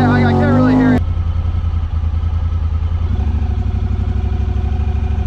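A vehicle engine rumbles with a steady, throbbing idle.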